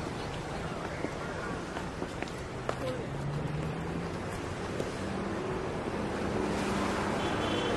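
Footsteps tap on a paved lane.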